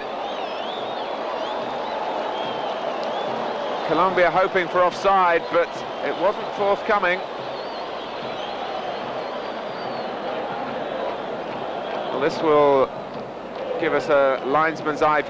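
A large stadium crowd roars steadily outdoors.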